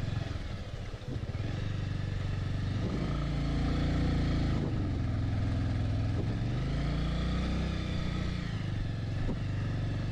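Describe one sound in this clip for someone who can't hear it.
Tyres crunch over a rough gravel road.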